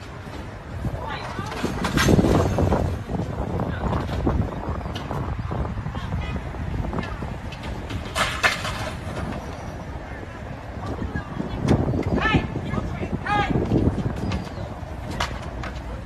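Young men shout outdoors in the street.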